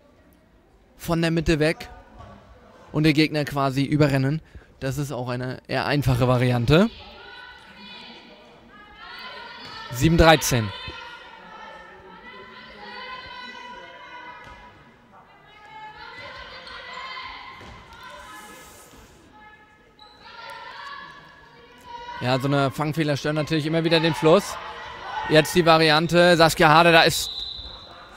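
Spectators chant and cheer loudly in an echoing hall.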